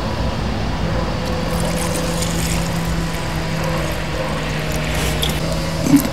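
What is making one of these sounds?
Liquid trickles and splashes as it is poured into a small cup.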